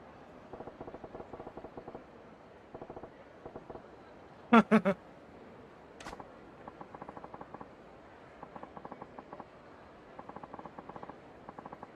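Soft electronic blips tick rapidly in short bursts, like letters being typed out.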